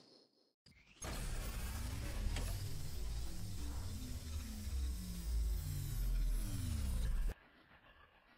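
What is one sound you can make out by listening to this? A game crystal whooshes and chimes as it opens.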